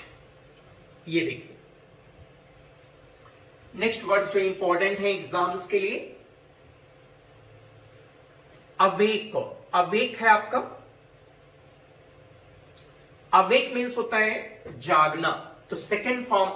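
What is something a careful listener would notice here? A man speaks clearly and steadily, explaining in bursts with pauses, close to a microphone.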